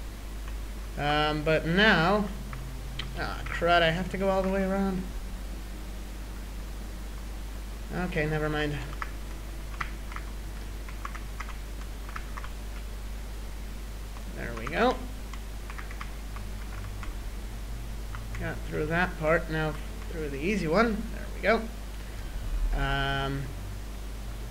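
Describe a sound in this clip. A young man talks animatedly into a close microphone, in short bursts.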